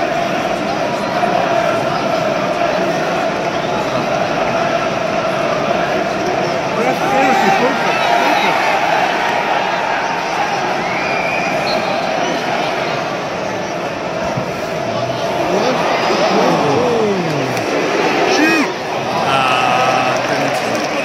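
A large stadium crowd murmurs, chants and shouts in an open stadium.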